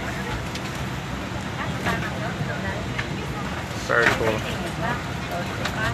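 Several men and women talk nearby over one another.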